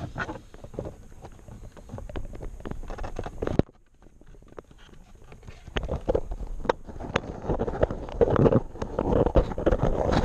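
Plastic parts click and rattle as hands handle them, close up.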